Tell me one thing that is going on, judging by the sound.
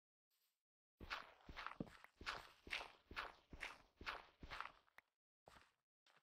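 Blocks are dug out with quick, repeated crunching thuds.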